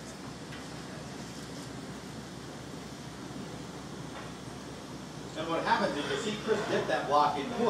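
A crowd murmurs quietly in a large open space.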